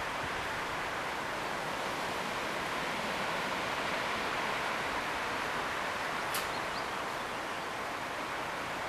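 Wire mesh creaks and rattles softly under a cat's paws.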